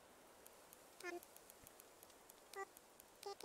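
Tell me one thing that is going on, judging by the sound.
Short electronic blips sound as letters are typed in.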